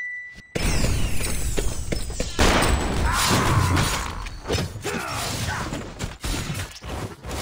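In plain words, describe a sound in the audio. Game sound effects of spells and strikes burst and clash.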